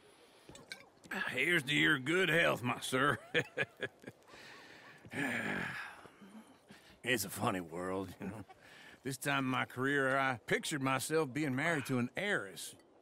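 An elderly man speaks warmly and with animation, close by.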